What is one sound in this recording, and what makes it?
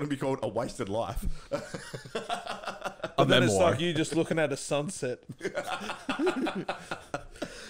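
A second man talks into a close microphone.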